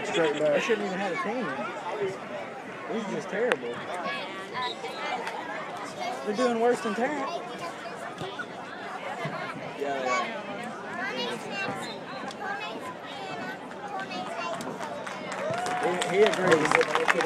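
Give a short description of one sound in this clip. Nearby men and women talk loudly over a crowd.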